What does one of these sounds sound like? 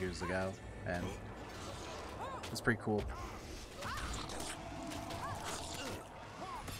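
Magic spells whoosh and chime in a fight.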